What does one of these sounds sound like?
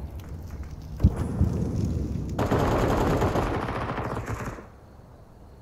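A grenade bursts nearby with a hissing burn.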